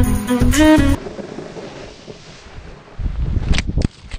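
A snowboard scrapes and hisses over snow.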